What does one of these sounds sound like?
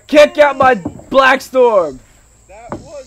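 A young man yells and groans loudly up close.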